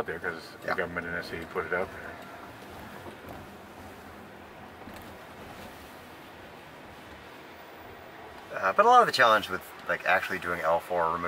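A car hums softly and steadily as it drives.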